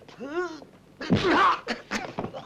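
A man shouts angrily at close range.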